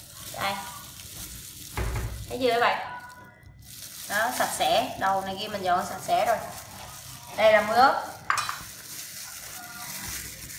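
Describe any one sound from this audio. Plastic gloves crinkle as hands handle food.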